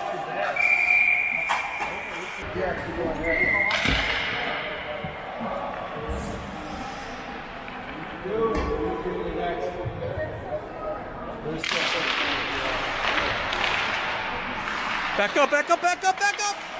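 Men talk and call out nearby, echoing in a large rink.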